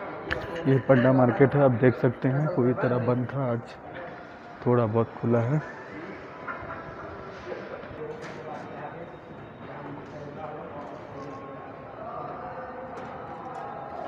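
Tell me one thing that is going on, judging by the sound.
Distant voices murmur faintly in a large echoing hall.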